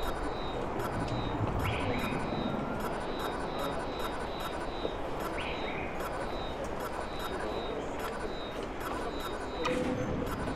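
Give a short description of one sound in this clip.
Short electronic chimes beep quickly over and over.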